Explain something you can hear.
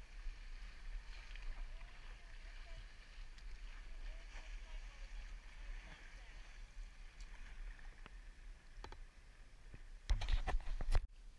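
Water laps and splashes against a kayak.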